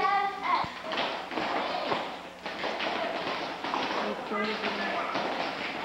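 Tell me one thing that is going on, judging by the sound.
Young girls chatter and call out in a room.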